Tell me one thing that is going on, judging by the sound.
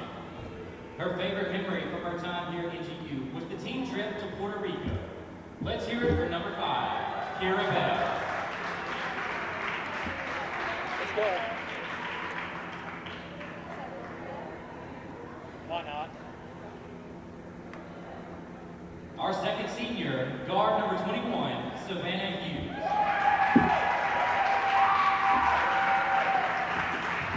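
A man speaks through a loudspeaker in a large echoing gym.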